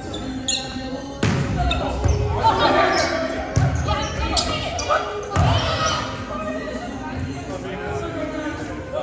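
Young men and women shout and call out to each other in a large echoing gym.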